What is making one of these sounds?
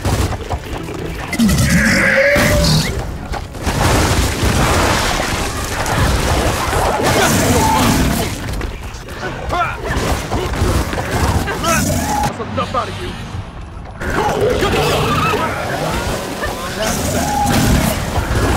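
A monster roars and screeches.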